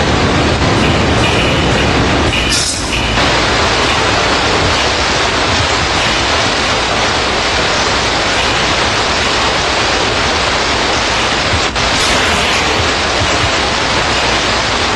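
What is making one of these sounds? Water pours and splashes steadily, loud and close.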